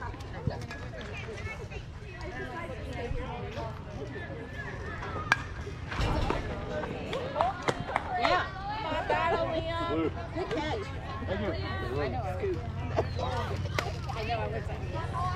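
Young players and spectators shout and cheer outdoors.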